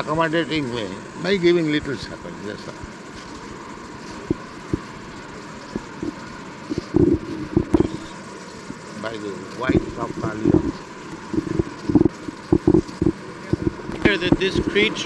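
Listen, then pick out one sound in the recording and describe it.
An elderly man speaks through a microphone on an old, hissy recording, with long pauses.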